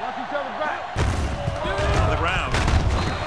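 A stadium crowd roars louder as a play begins.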